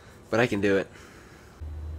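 A young man speaks briefly and casually close by.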